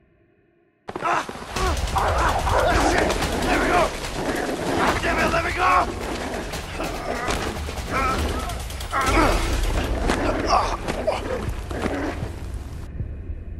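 A man shouts and groans in panic.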